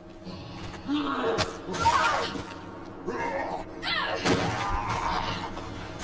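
A woman cries out in pain.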